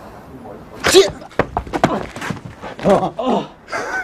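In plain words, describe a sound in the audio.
A body thuds onto hard pavement.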